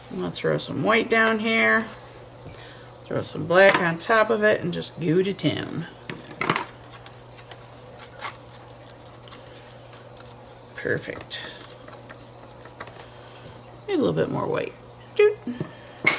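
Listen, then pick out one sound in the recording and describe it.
A palette knife scrapes and dabs paint on a metal palette.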